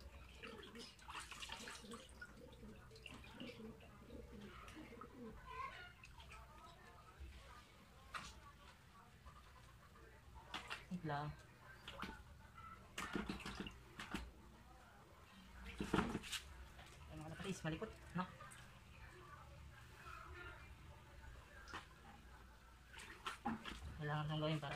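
Water splashes and sloshes in a bucket.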